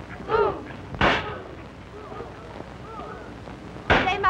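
A man hammers on a wooden barrel.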